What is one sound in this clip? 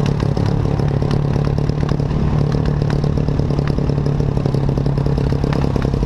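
A dirt bike engine drones steadily up close.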